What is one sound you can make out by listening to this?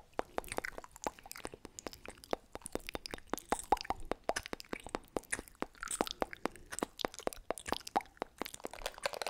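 Fingers tap and click rapidly on a plastic object close to a microphone.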